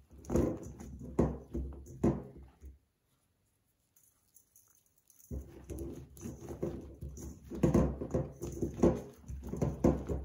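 Hands shift slices of eggplant around in a metal bowl.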